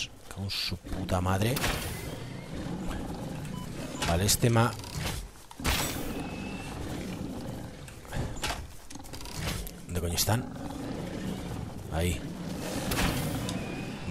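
Animal creatures grunt close by.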